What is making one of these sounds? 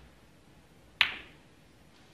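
Snooker balls collide with a hard click.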